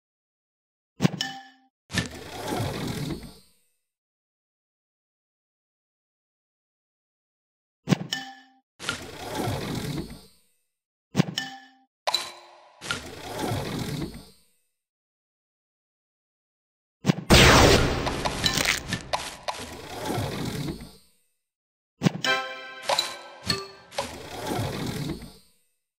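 Game sound effects chime and pop as candies are matched.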